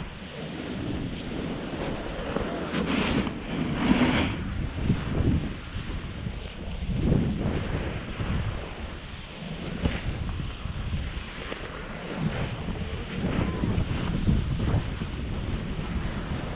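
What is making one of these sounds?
A snowboard scrapes and carves over crusty snow.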